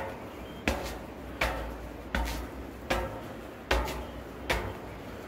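Footsteps clang on metal stairs at a steady pace.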